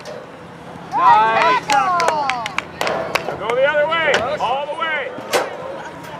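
Young women shout and cheer outdoors across a playing field.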